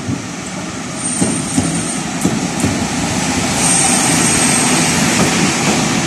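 Wheels squeal briefly on the rails.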